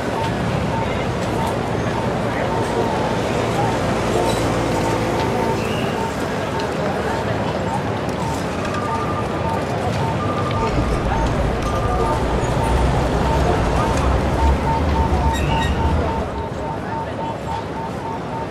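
Traffic hums steadily along a busy city street.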